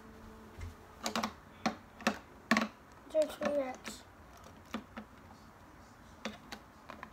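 Plastic toy bricks click and clatter on a wooden table.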